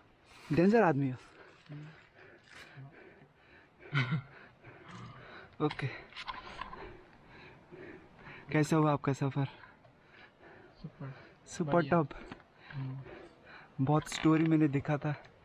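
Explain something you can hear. A young man talks and laughs close by, with animation.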